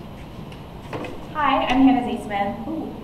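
A young woman begins speaking into a microphone in a large hall.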